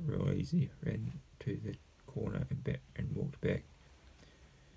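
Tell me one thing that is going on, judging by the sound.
A man speaks calmly and close by, as if into a microphone.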